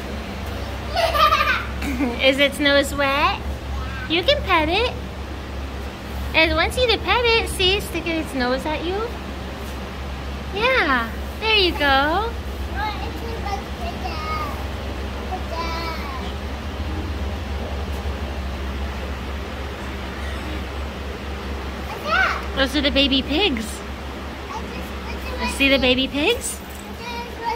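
A little girl talks excitedly close by.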